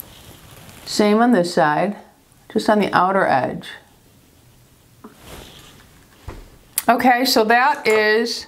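A woman speaks calmly, close to a microphone.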